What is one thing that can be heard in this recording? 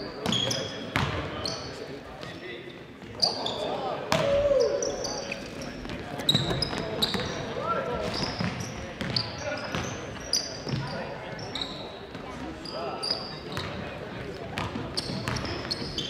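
Sneakers squeak sharply on a hard court in a large echoing gym.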